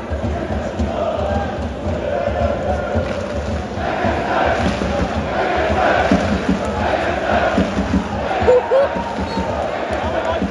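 Fans clap their hands in rhythm.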